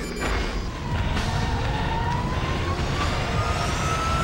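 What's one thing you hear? An aircraft engine hums and whines, slowly rising in pitch.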